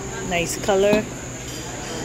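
A metal lid clinks.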